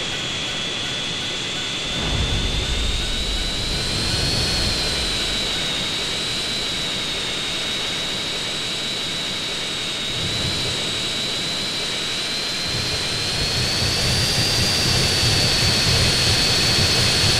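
A jet engine roars steadily, its whine rising and falling slightly.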